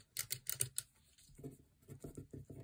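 A pen scratches as it writes on paper.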